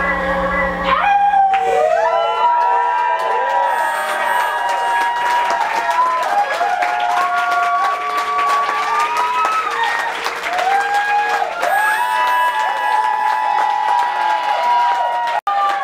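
Electronic tones glide up and down in a wavering melody.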